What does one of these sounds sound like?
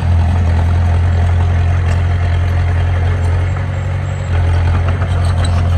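Bulldozer tracks clank and squeak as the machine pushes soil.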